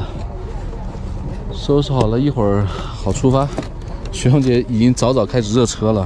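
A fabric curtain rustles as it is pulled.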